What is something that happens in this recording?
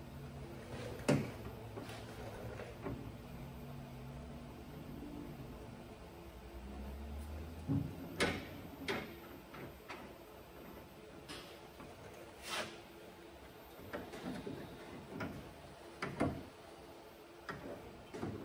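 Metal clanks and knocks now and then, close by.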